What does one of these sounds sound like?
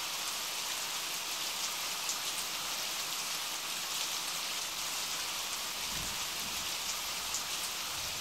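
Heavy rain splashes steadily onto water, with drops pattering and hissing.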